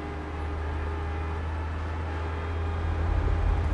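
A car engine hums as a car pulls away close by.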